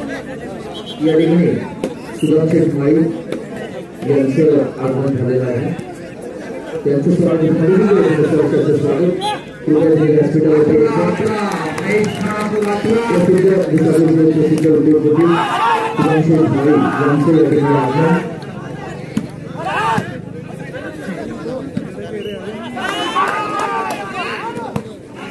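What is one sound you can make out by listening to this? Men call out to each other during a ball game outdoors.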